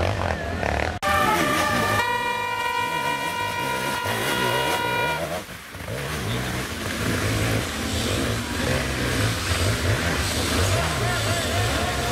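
A second dirt bike engine roars and revs up a rocky climb.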